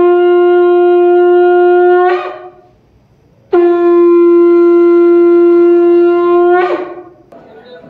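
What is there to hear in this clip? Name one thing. A conch shell is blown in long, loud, steady blasts.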